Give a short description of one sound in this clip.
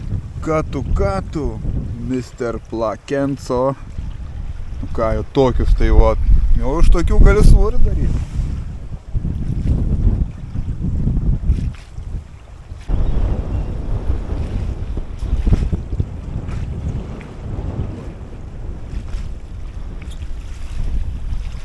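Wind blows across open water, rumbling low.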